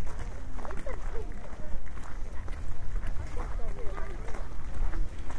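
Women chat quietly nearby, outdoors.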